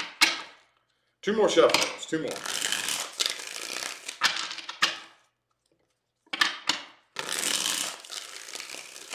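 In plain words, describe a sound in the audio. Cards shuffle and riffle in a man's hands.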